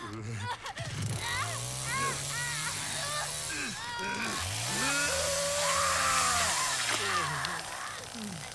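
A chainsaw engine roars and revs.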